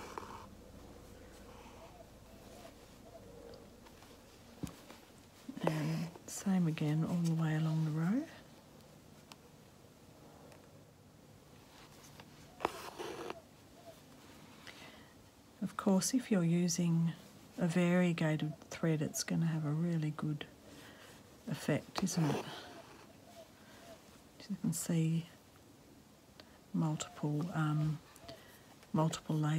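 Thread rustles softly as it is pulled through fabric.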